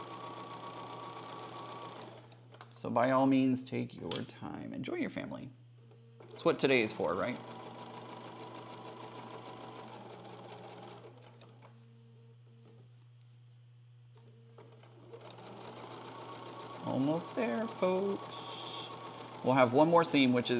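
A sewing machine hums as it stitches in short runs.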